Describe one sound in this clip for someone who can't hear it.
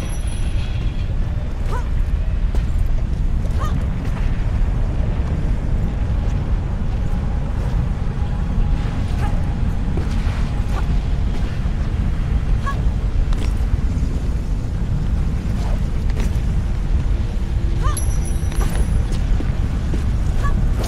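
Footsteps clang on metal platforms.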